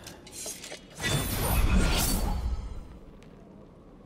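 A burst of flame roars loudly.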